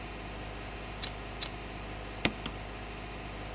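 Short electronic clicks sound as a choice is made.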